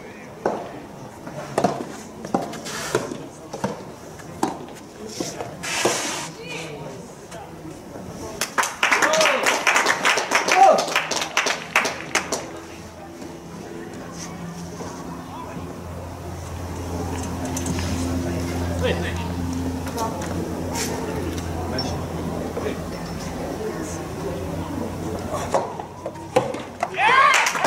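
A tennis ball is struck with sharp pops of rackets.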